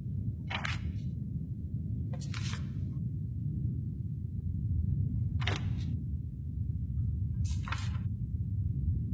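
Paper rustles and crackles as a sheet is picked up and handled close by.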